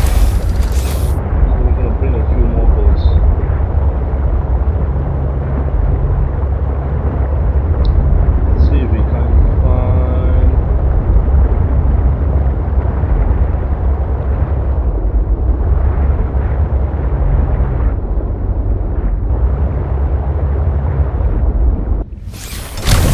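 An underwater scooter hums as it pulls a diver through water.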